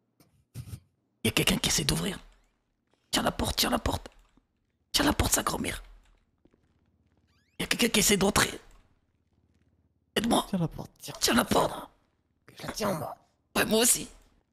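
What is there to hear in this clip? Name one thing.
A fist knocks on a wooden door.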